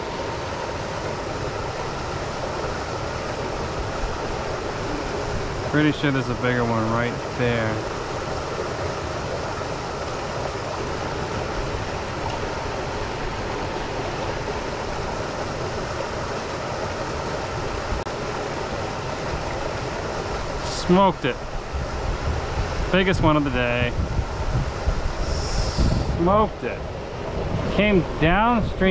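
A small stream rushes and gurgles steadily over rocks nearby.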